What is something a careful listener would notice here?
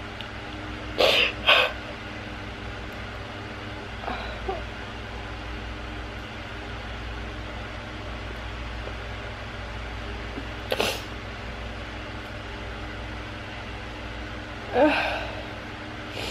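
A young woman makes short vocal sounds close by.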